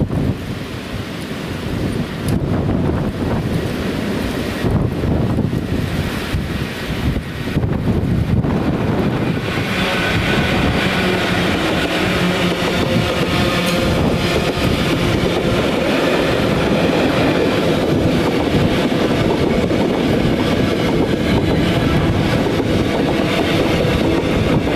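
A diesel locomotive rumbles closer and roars past.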